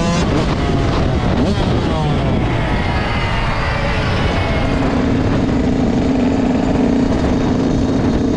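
A second dirt bike engine buzzes nearby and moves away.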